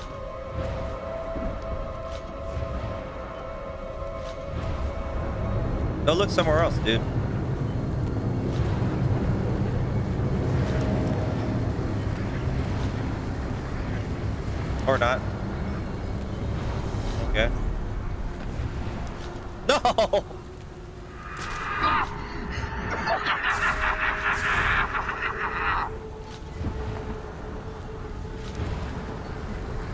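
A young man talks casually into a microphone, close by.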